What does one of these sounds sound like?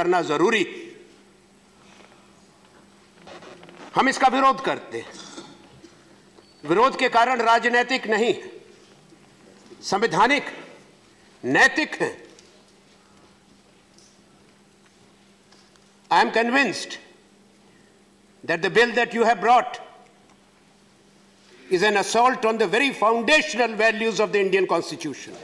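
A middle-aged man speaks formally into a microphone, reading out in short bursts with pauses.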